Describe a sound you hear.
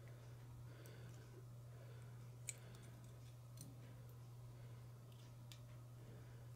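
Fingers handle a small plastic fishing lure with faint clicks and rustles.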